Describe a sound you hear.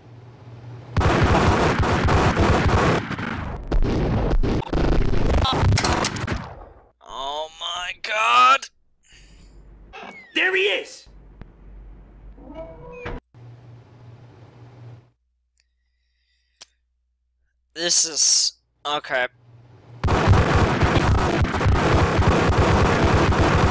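Pistols fire in rapid bursts of gunshots.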